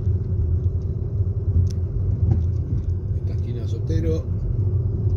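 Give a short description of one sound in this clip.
A car engine rumbles low and steady while driving along a street.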